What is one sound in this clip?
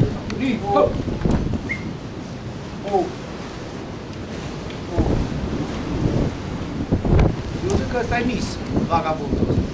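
A young man talks nearby, outdoors.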